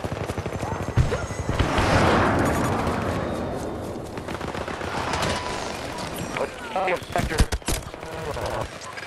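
Gunfire cracks and rattles in bursts.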